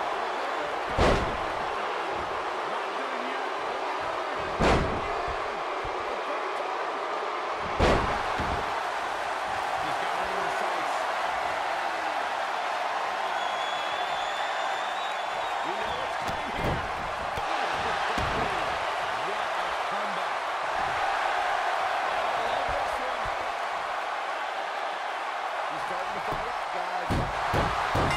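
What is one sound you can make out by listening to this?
Heavy bodies slam down hard onto a wrestling ring mat.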